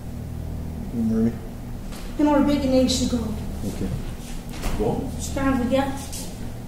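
A middle-aged woman speaks close to the microphone.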